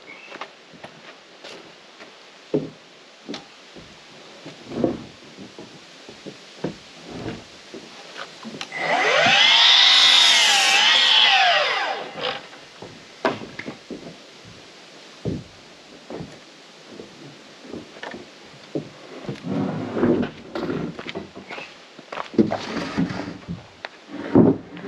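Wooden boards knock and clatter as they are handled.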